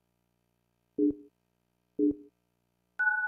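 A game machine sounds short electronic beeps in a steady count.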